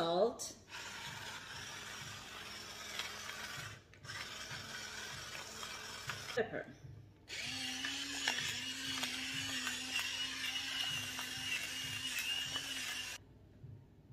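A pepper grinder grinds with a steady, rasping crunch.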